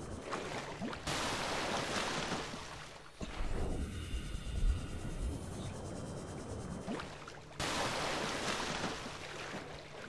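Water splashes and rushes as a small craft breaks the surface.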